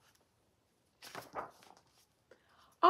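Paper rustles as a book page is turned.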